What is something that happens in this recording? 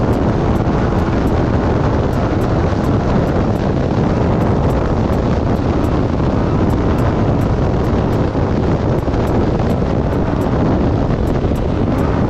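An off-road vehicle engine roars steadily.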